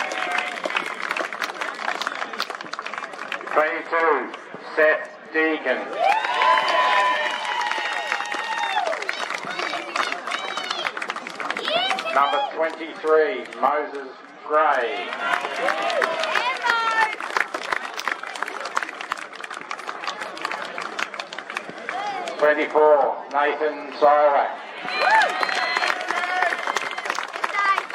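A crowd claps and applauds steadily.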